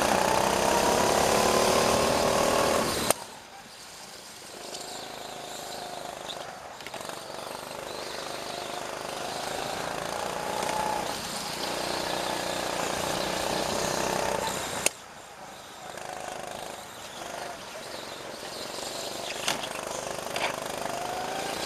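A go-kart engine buzzes up close, rising and falling in pitch as it speeds up and slows down.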